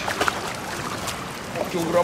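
A fish splashes in the water beside a boat.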